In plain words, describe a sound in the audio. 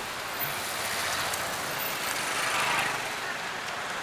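A motorbike engine passes close by.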